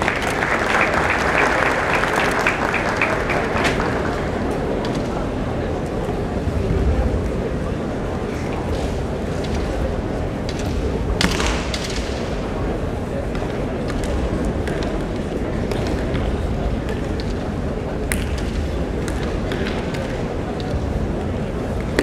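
Feet stamp and slide on a wooden floor.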